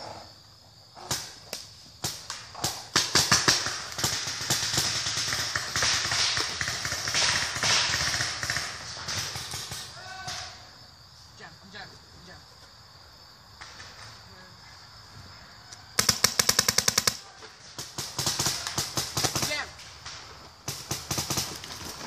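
Paintball guns fire in rapid popping bursts outdoors.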